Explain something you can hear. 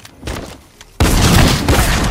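Shotgun blasts ring out loudly.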